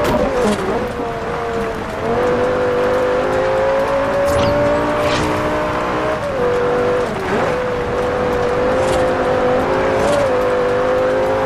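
A sports car engine roars steadily, rising and falling in pitch as the car shifts gears.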